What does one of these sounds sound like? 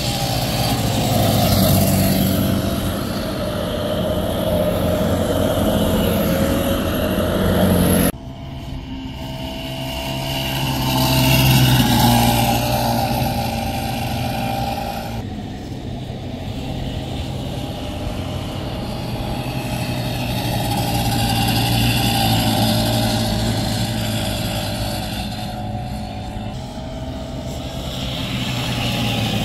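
Small kart engines buzz and whine as they race past.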